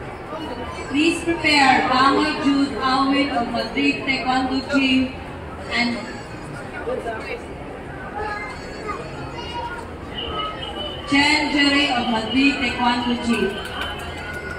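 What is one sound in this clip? A crowd of children cheers and shouts loudly.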